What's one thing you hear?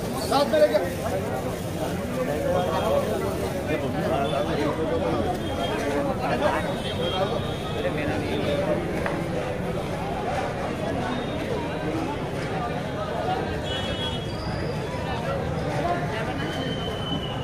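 A crowd of men chatter and talk together outdoors.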